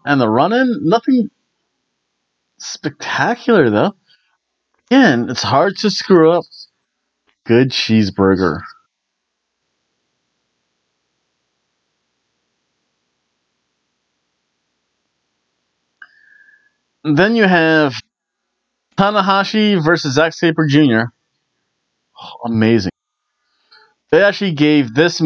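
A middle-aged man talks with animation into a close microphone, pausing between phrases.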